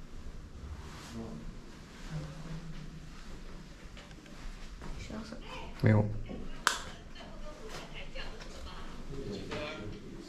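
A few men and women talk quietly nearby.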